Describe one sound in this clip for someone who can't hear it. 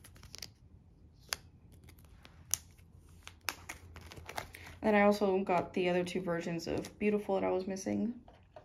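Plastic binder sleeves crinkle and rustle under handling.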